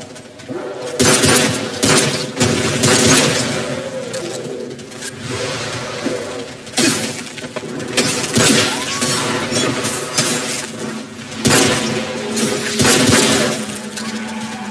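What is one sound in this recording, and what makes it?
Gunshots fire loudly in an echoing space.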